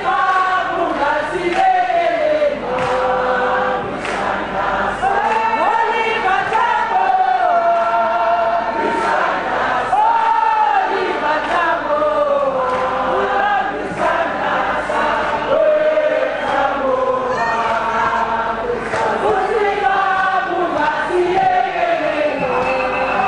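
A man sings loudly into a microphone, heard through loudspeakers.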